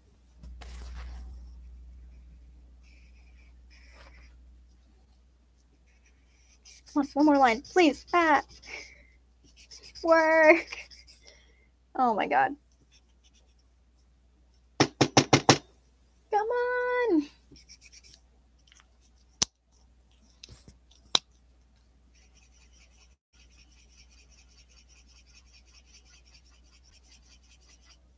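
A marker rubs softly across paper.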